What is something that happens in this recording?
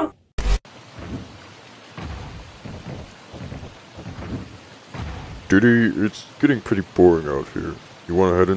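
Water splashes gently against wooden posts.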